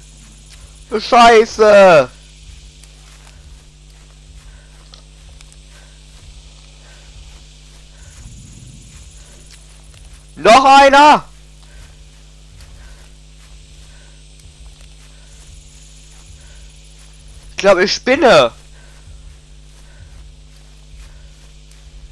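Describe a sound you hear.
Footsteps rustle steadily through grass.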